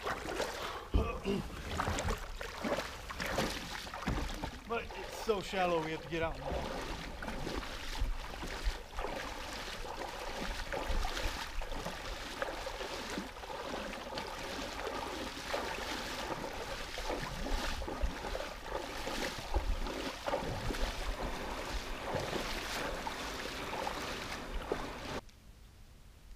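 Boots splash and slosh through shallow water.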